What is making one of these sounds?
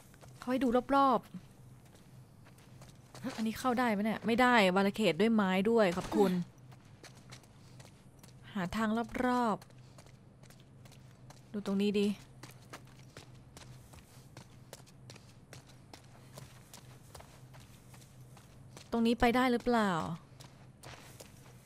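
Footsteps tread on pavement and grass.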